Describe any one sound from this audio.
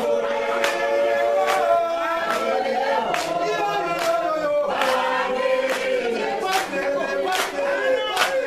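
A group of men and women sing together loudly in a large hall.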